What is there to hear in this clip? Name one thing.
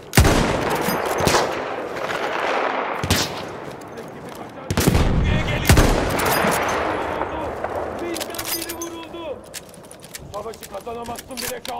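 A rifle bolt clicks as it is worked.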